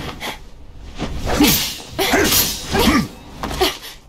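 Metal blades clash and swish in a fight.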